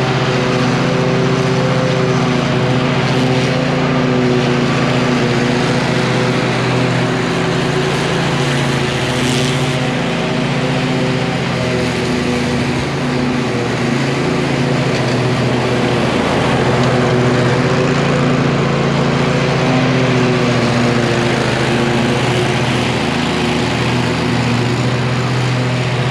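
A ride-on mower engine drones steadily nearby, growing louder as it passes close.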